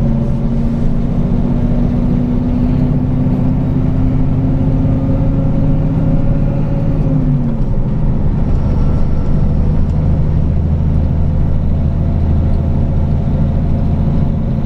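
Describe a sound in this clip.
A truck's diesel engine drones steadily from inside the cab.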